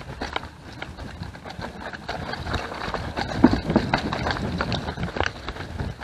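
A bicycle rattles and clatters over bumps and roots.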